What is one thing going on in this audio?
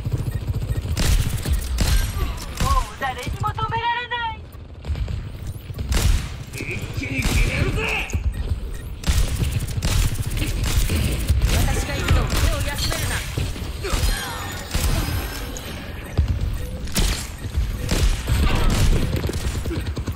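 Rifle shots crack in quick bursts.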